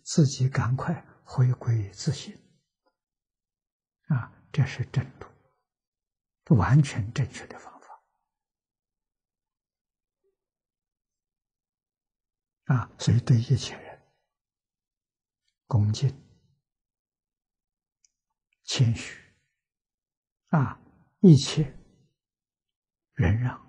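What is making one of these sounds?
An elderly man speaks calmly and warmly into a close microphone, pausing often.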